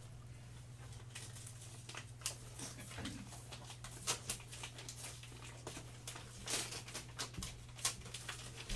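Paper rustles and taps on a table.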